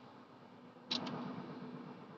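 A hand taps twice on a window pane.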